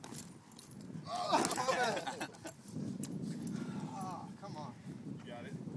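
Young men laugh loudly nearby.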